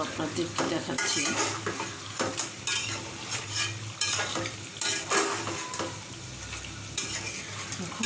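A metal spoon scrapes and clinks in a pot of stew.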